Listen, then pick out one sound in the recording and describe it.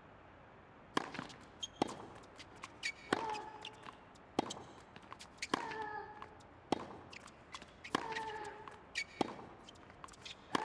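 A tennis ball is struck with sharp pops of a racket, back and forth.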